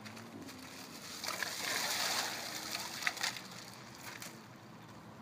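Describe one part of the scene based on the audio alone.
Ice cubes clatter and rattle into a plastic bucket.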